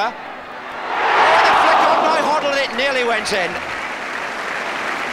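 A large crowd roars and cheers outdoors, swelling loudly and then dying down.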